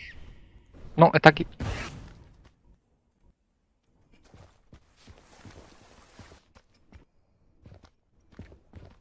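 Video game combat effects clash and whoosh.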